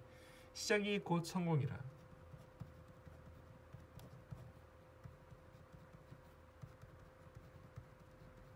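A pen scratches softly on paper as someone writes.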